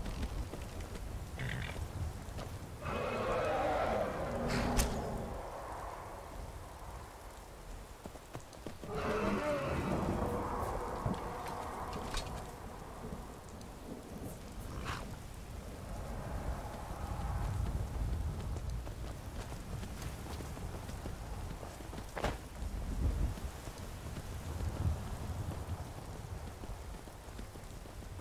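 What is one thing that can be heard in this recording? Wind blows in low gusts outdoors.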